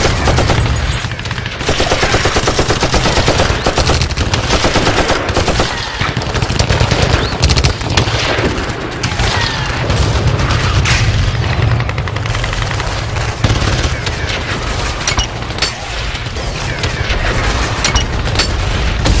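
Automatic rifles fire rapid bursts of gunshots.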